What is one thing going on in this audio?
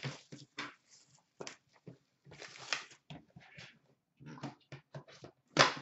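Hands handle a small box.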